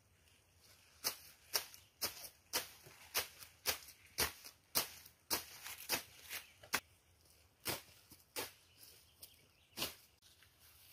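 A blade chops through weeds in quick strokes.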